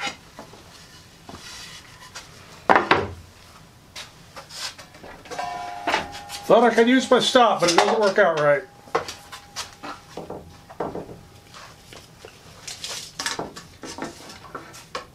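Wooden boards knock and clatter.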